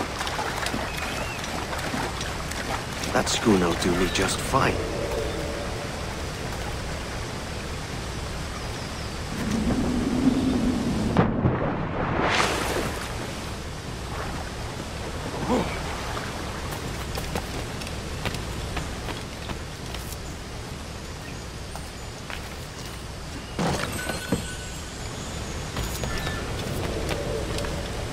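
Water rushes steadily down a waterfall.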